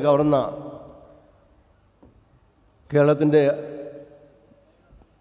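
A man speaks loudly and slowly through a microphone, his voice echoing in a large space.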